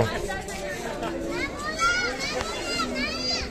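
People chatter around.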